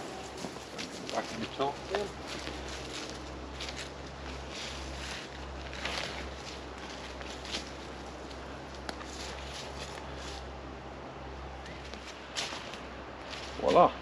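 Footsteps rustle through dry leaves.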